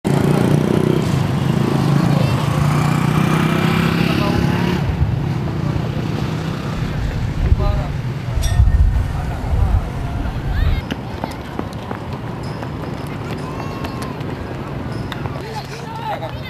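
Young men chatter and call out in a group outdoors.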